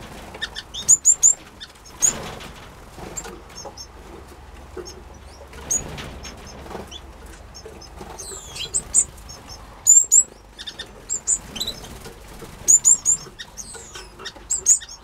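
Small birds chirp and twitter in short, high bursts.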